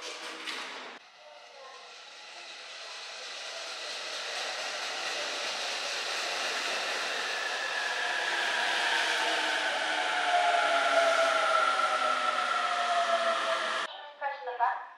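A train pulls in along the platform, rumbling louder as it gets close.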